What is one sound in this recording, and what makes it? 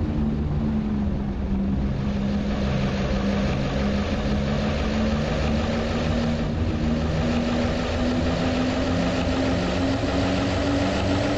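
A bus engine hums steadily as it drives along, rising slightly in pitch as it speeds up.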